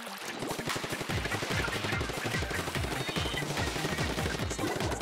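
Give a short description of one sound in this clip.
Wet ink splats and squelches in quick bursts.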